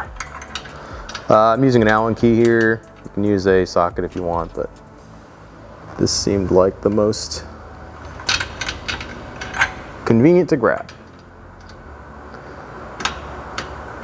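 Plastic trim clips click and snap.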